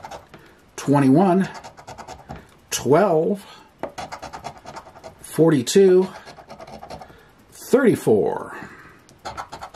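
A coin scratches quickly across a card.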